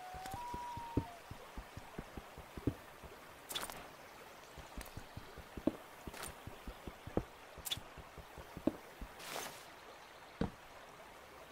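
A pickaxe knocks on stone blocks, which crack and break.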